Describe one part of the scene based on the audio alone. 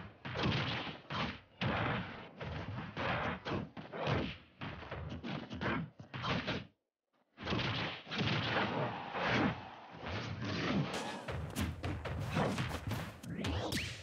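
Heavy hammer blows land with loud thuds.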